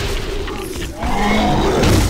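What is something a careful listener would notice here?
Fire bursts and roars in a blast.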